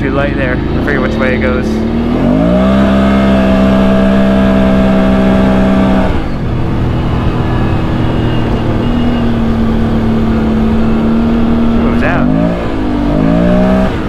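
An all-terrain vehicle engine hums steadily and revs up and down.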